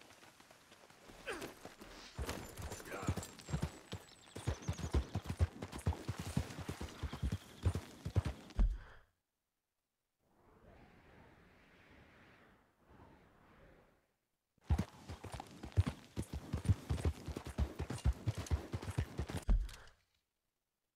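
Horse hooves clop quickly over rocky ground.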